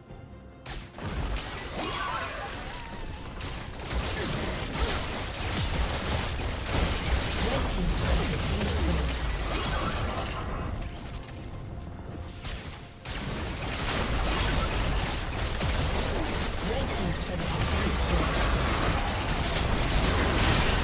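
Spell blasts, impacts and explosions of a video game battle clash and burst.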